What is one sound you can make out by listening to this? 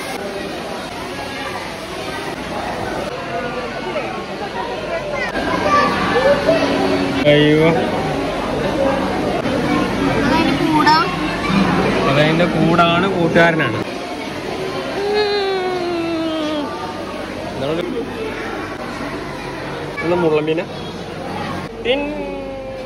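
A crowd of people murmurs and chatters in an echoing hall.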